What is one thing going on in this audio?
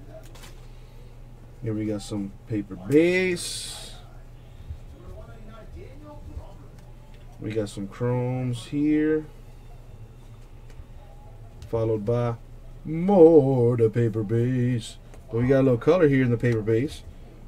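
Trading cards slide and shuffle in hands.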